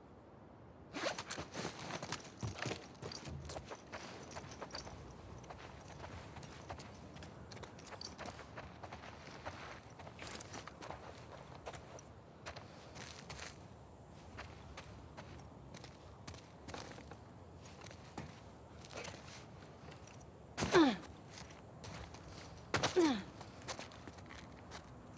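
Footsteps patter over floors and grass.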